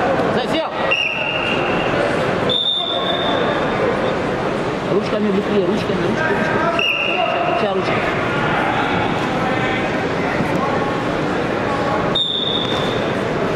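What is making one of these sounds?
A referee blows a short, sharp whistle several times.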